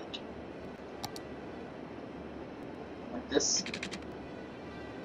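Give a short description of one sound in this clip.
Short computer game interface clicks sound as a road is placed.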